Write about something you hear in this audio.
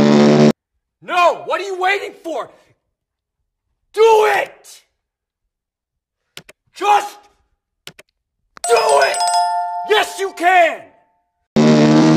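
A man shouts with animation.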